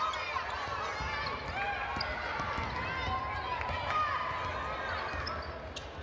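A basketball thumps as it is dribbled.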